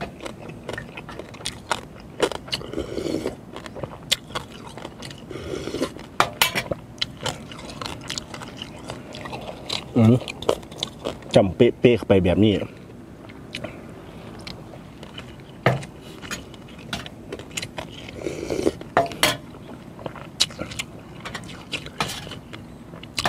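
A man chews and slurps food noisily close by.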